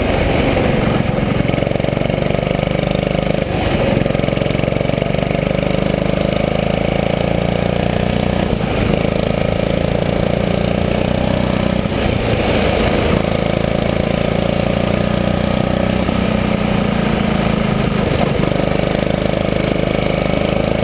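A small kart engine buzzes loudly close by, rising and falling in pitch.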